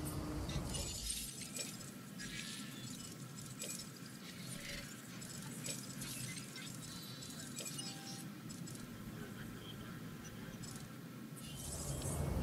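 Soft interface clicks and chimes sound as menus change.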